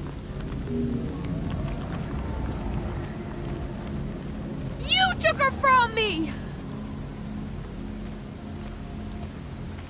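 Footsteps squelch on a wet path.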